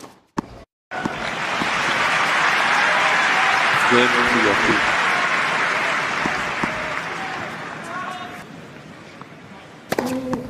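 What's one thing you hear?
A large crowd applauds and cheers in a big open arena, then slowly dies down.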